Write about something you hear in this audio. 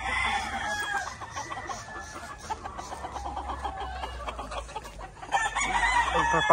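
Several roosters crow nearby, outdoors.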